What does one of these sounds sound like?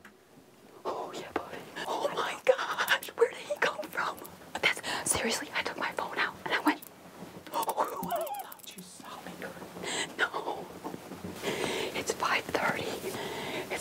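A woman talks excitedly and close by.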